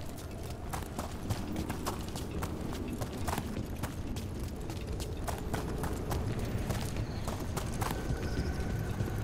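Footsteps crunch quickly over stone and gravel.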